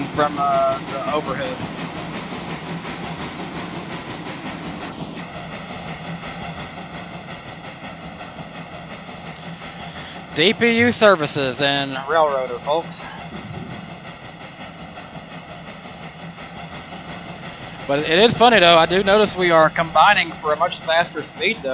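A steam locomotive rumbles and chuffs steadily along the track.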